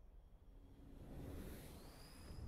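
A spaceship engine roars low as the craft flies past.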